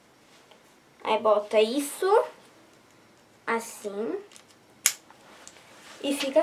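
A young girl speaks calmly, close by.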